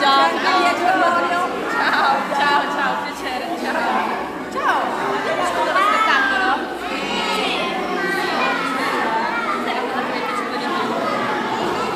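A woman greets people nearby with animation.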